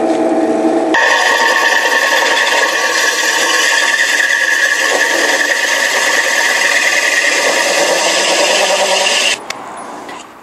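A drill bit grinds through plastic.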